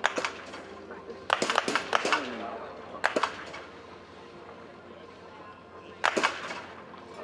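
A rifle fires sharp shots outdoors.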